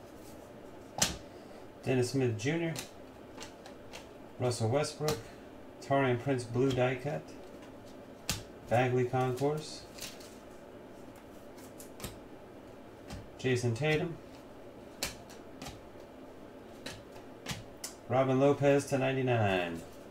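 Trading cards slide and tap against each other in a hand.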